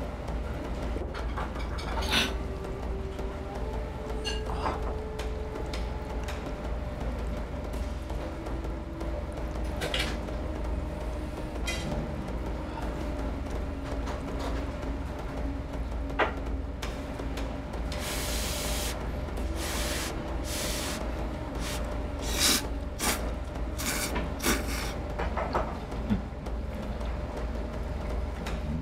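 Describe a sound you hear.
Chopsticks clink against a bowl.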